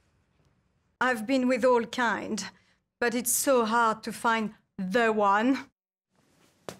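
A woman speaks calmly and expressively, close to the microphone.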